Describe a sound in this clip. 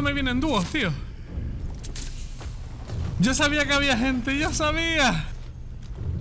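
A young man talks loudly and excitedly into a microphone, close up.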